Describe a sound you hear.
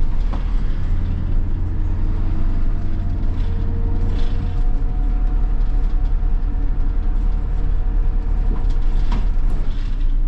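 Small rattles and knocks clatter inside the bus.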